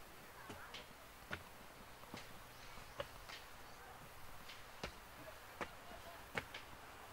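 Footsteps thud on wooden steps at a steady pace.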